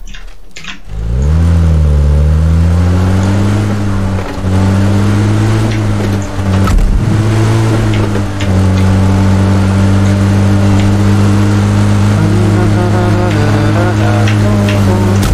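A vehicle engine starts and rumbles steadily as it drives.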